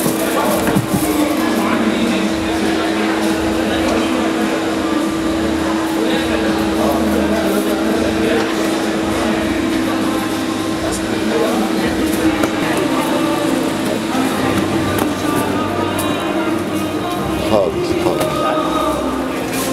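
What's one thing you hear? Books thud and rustle as they are stacked on the floor.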